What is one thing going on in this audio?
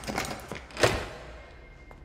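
A door bumps open.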